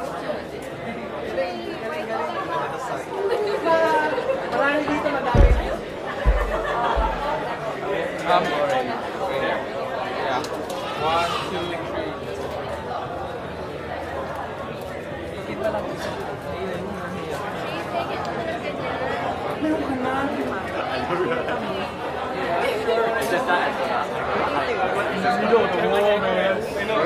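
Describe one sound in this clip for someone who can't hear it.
A crowd of young men and women chatter close by.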